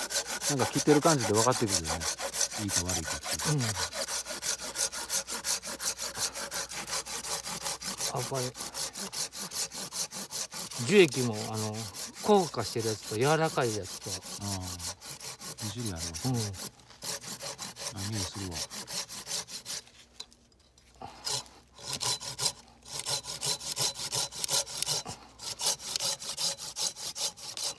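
A hand saw cuts back and forth through wood with quick, rasping strokes.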